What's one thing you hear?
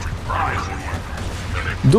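A heavy gun fires rapid shots.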